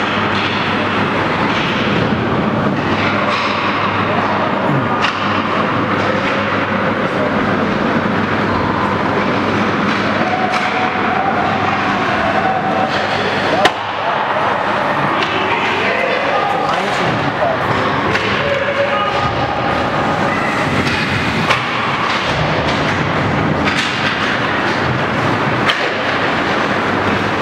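Ice skates scrape and carve on ice.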